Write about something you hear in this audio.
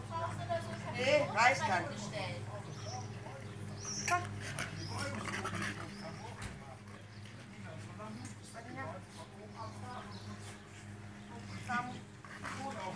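Dogs whine and yelp excitedly.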